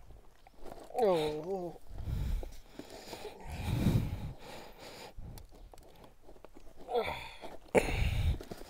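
A man groans close by.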